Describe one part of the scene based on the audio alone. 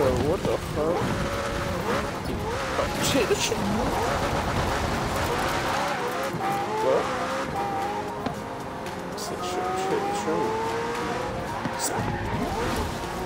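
Tyres skid and rumble over grass.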